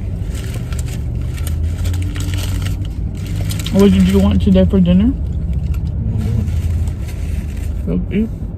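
Paper wrapping crinkles.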